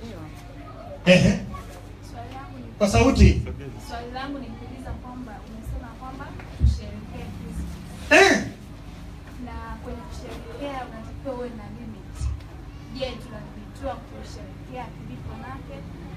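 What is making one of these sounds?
A young man speaks into a microphone, heard through a loudspeaker in an echoing room.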